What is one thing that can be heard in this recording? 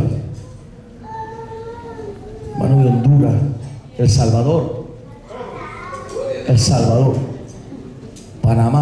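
A man preaches loudly and with passion through a microphone in a large echoing hall.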